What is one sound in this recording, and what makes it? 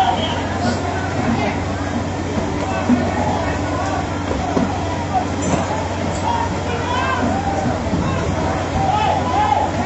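A crowd of men and women shout and call out excitedly.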